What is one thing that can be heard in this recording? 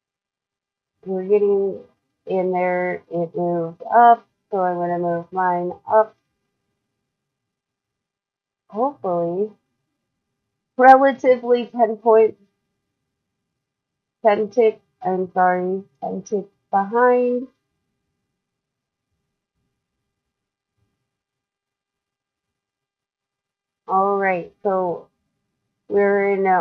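A young woman talks calmly into a close microphone, in short bursts with pauses.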